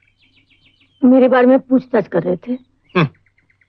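A young woman speaks softly and emotionally.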